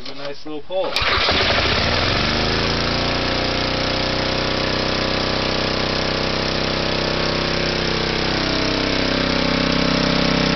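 A small petrol engine starts and runs with a loud, steady drone.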